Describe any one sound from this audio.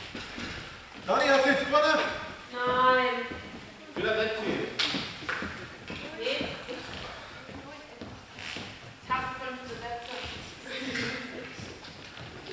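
Men talk with animation in a large echoing hall.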